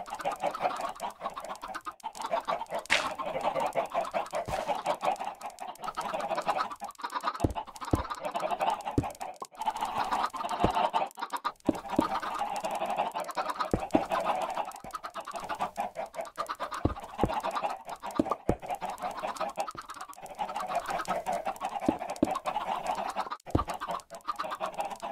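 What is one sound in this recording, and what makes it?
Chickens cluck and squawk nearby.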